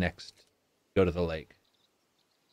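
A young man speaks briefly and with animation into a microphone.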